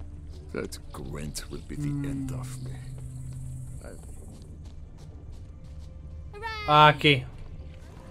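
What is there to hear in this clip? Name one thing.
Footsteps run over a dirt path.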